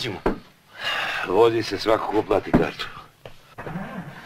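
An elderly man answers gruffly.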